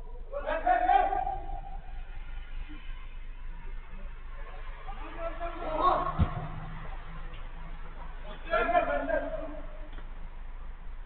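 Men shout to each other at a distance outdoors.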